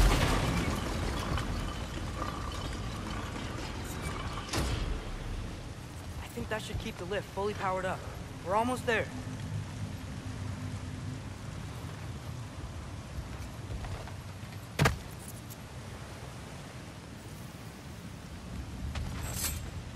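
Footsteps thud on wooden planks.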